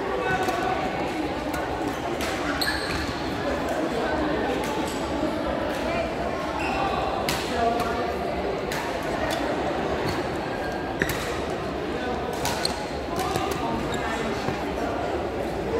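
Shuttlecocks are struck with sharp pops of badminton rackets.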